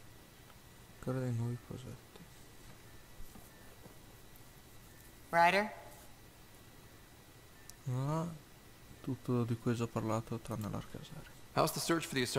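A man speaks calmly in reply.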